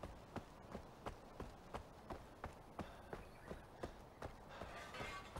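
Footsteps thud quickly and evenly on a dirt path.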